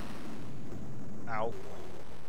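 A whistle falls quickly in pitch as a video game monster drops to the ground.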